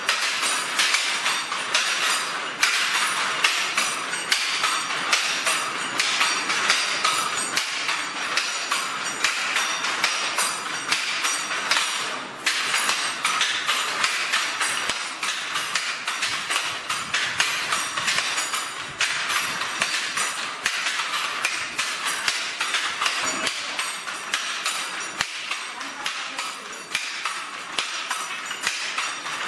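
A wooden handloom clacks and thumps in a quick, steady rhythm.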